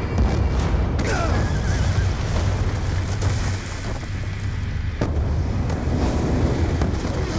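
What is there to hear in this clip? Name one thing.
Bodies thump and scuffle in a struggle.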